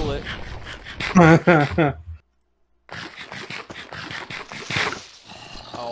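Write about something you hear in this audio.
Chewing and munching sounds repeat quickly.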